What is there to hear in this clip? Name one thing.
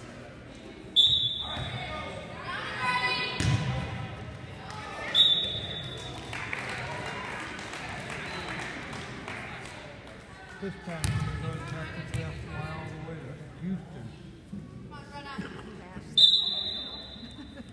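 A referee's whistle blows sharply several times.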